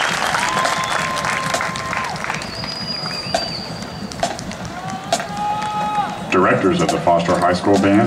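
Snare drums rattle and tap in quick rhythms.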